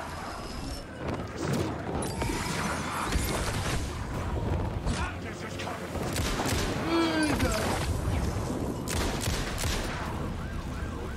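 Loud blasts and bangs burst out one after another.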